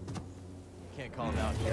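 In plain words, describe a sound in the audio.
A young man speaks casually, close to a microphone.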